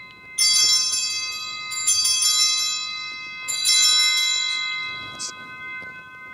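A small hand bell rings brightly several times in a large echoing hall.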